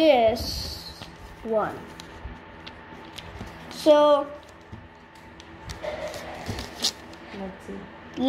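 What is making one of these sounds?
A young boy speaks with animation, close by.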